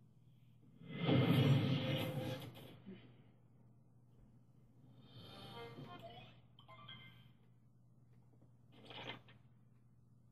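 A television plays loud game music and sound effects.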